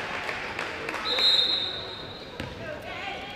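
A referee's whistle blows a long shrill blast.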